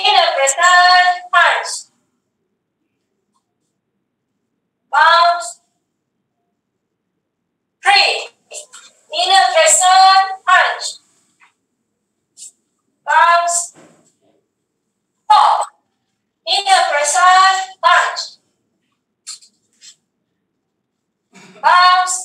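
A woman shouts short commands in bursts through an online call.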